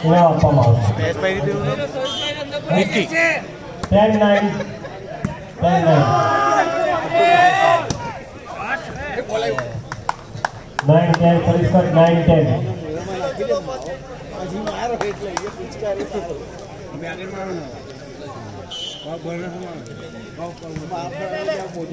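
A volleyball is struck with a hand, with sharp slaps.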